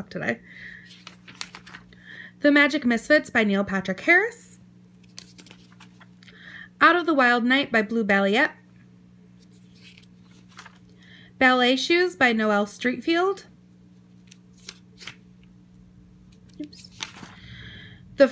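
Paper pages turn and rustle softly.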